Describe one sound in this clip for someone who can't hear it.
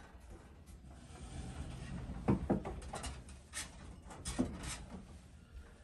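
A man clatters dishes.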